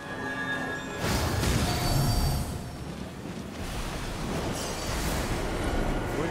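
A magic spell bursts with a shimmering whoosh.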